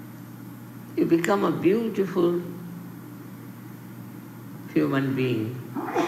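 An elderly woman speaks slowly and calmly into a microphone, with pauses.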